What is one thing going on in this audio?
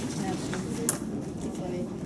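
A paper envelope drops into a ballot box.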